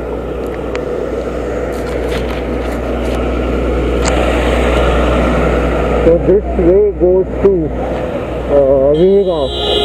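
A truck engine roars as the truck passes close by.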